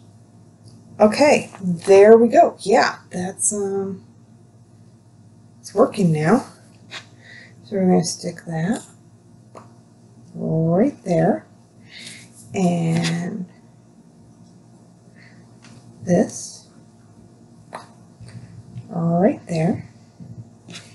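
A middle-aged woman talks calmly close by, in short phrases with pauses.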